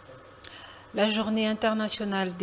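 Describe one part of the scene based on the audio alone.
A young woman speaks calmly into a microphone, reading out.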